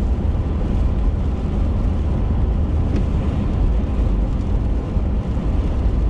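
A windshield wiper swipes across the glass once.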